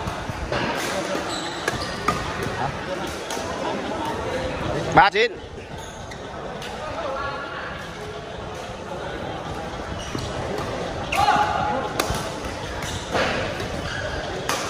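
Voices of players chatter in a large echoing hall.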